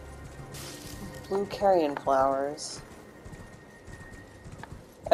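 A horse's hooves thud softly on grass.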